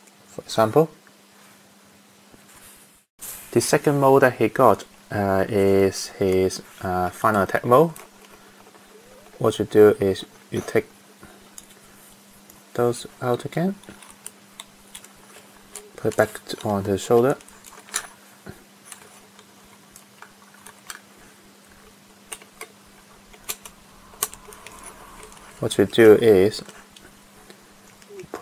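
Small plastic toy parts click and snap as they are fitted together.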